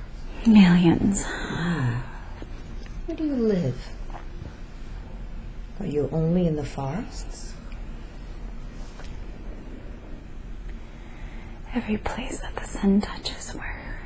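A young woman moans and mumbles sleepily close by.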